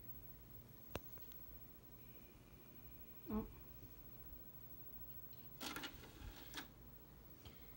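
A plastic disc clicks and rattles as it is handled.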